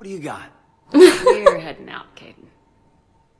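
A woman answers briefly and calmly.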